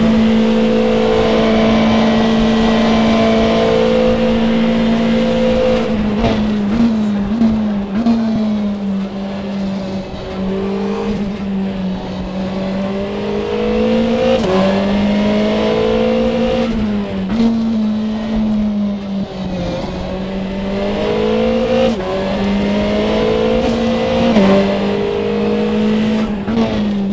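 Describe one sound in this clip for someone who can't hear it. A racing car engine roars steadily, dropping in pitch with each downshift and climbing as it speeds up.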